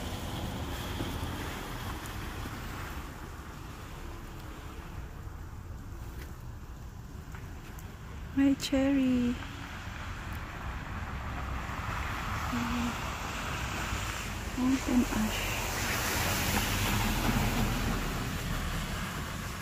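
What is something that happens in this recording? Wind blows softly outdoors while snow falls.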